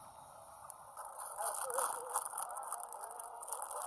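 A plastic noodle packet crinkles.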